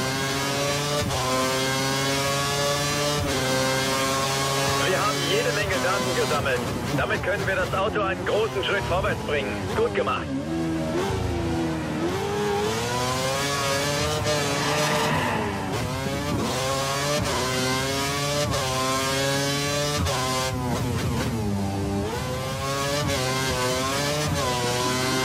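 A racing car engine screams at high revs, rising through the gears and dropping as it brakes for corners.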